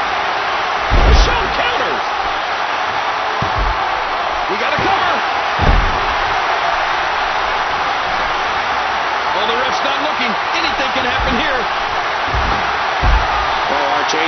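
Heavy thuds of bodies slam onto a wrestling ring mat.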